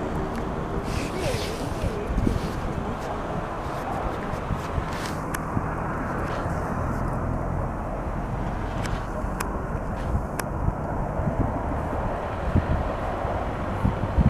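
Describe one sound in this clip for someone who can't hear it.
A young woman talks softly and affectionately to a dog close by.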